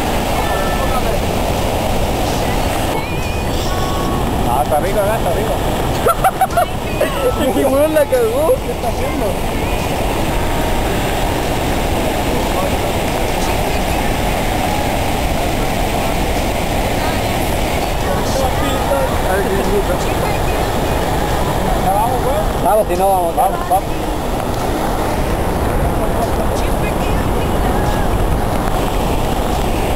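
A waterfall roars loudly and steadily nearby.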